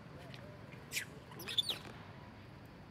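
A young monkey squeals sharply up close.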